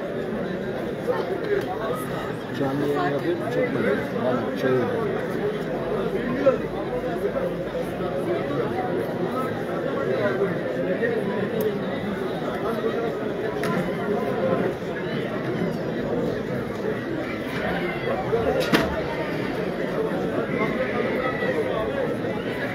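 A large outdoor crowd chatters and calls out from a distance.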